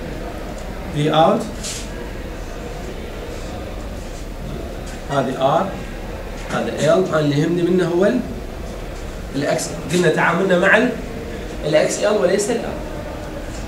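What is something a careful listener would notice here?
A man speaks in a lecturing tone, in a room with some echo.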